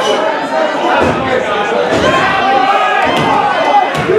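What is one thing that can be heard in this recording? A body slams down hard onto a wrestling ring with a heavy thud.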